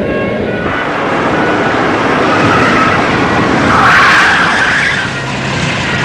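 A car engine hums as a car pulls up and idles.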